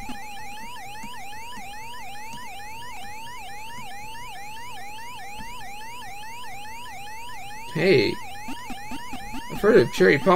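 A retro video game's siren wails with a rapid, repeating rising pitch.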